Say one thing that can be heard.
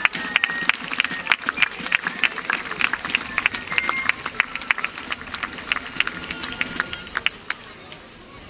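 Lively folk music plays outdoors.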